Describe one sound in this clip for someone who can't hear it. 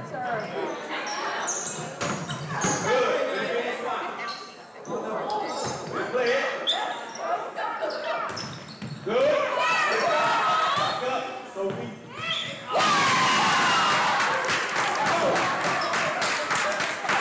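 Young women players call out and shout during the rally.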